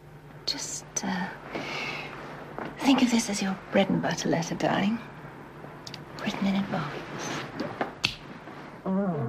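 A woman speaks softly and closely.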